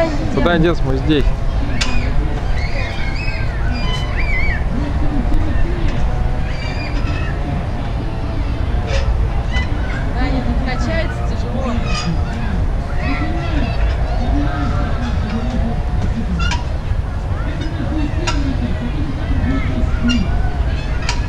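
A young girl talks nearby.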